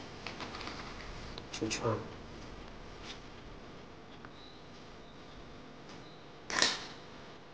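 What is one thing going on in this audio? Leaves rustle and crinkle as they are folded around rice.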